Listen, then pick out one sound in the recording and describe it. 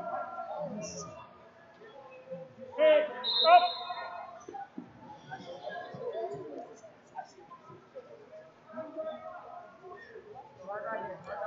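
Wrestlers' bodies thump and shuffle on a mat.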